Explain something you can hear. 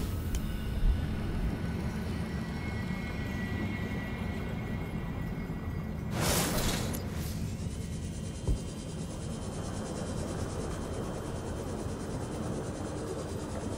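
Deep water rumbles low and steady all around.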